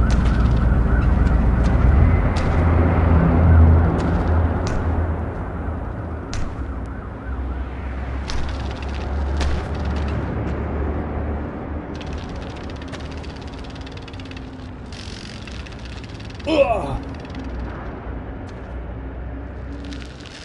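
Bicycle tyres knock and thump as a bike hops across boards.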